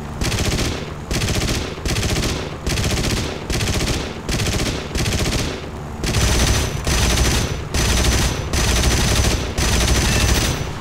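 A piston-engine propeller fighter drones in flight.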